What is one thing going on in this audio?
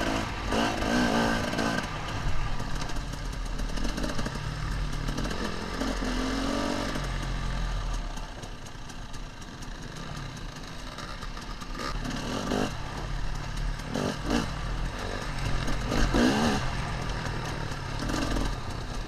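A dirt bike engine drones close by and revs up and down.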